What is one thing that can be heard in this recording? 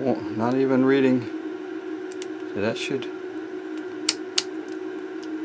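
A rotary switch clicks as it is turned.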